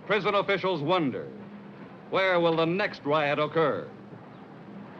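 A man speaks loudly nearby.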